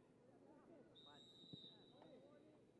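A referee's whistle blows a long sharp blast.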